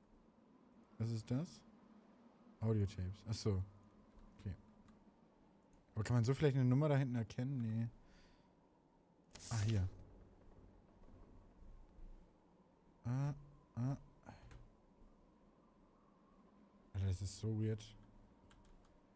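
A man talks calmly and intermittently into a close microphone.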